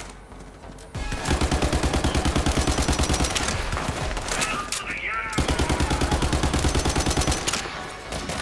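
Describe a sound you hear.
A rifle fires in fast, rapid bursts.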